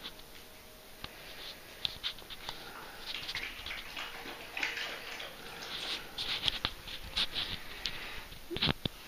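A dog laps water from a bowl.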